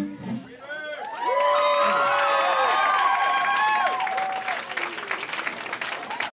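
An electric guitar plays sliding, wavering notes.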